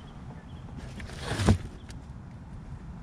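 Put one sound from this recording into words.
A cardboard box rustles and scrapes in a plastic bin.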